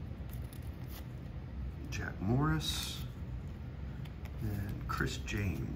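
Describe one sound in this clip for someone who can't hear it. Hands shuffle through a stack of trading cards.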